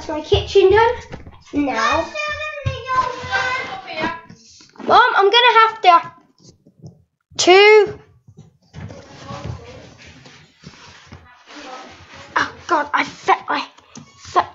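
A young boy talks excitedly close to a microphone.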